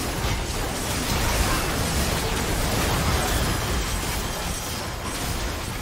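Magic blasts and crackling spell effects burst in a fast game fight.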